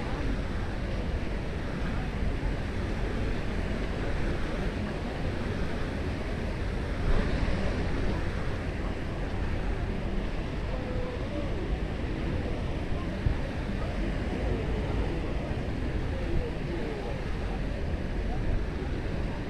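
Many people chatter and call out across a busy beach outdoors.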